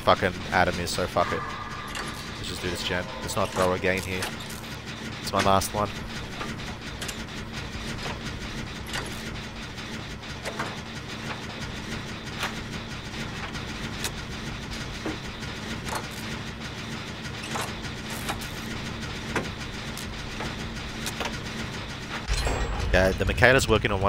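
A generator rattles and clanks as it is being repaired.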